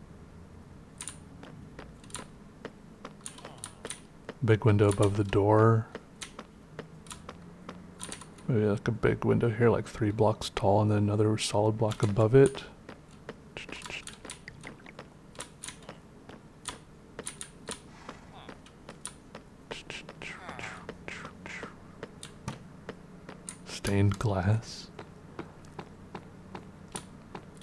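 Footsteps tap steadily on hard stone.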